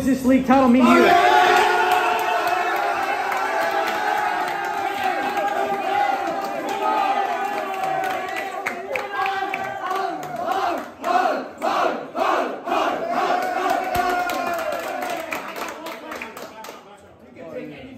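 A group of young men cheer and shout loudly.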